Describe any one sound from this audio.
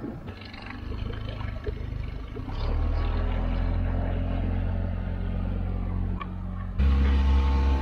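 A small outboard motor drones as a dinghy pulls away across the water.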